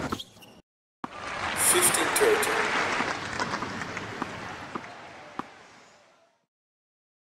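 A large crowd applauds and cheers, then fades away.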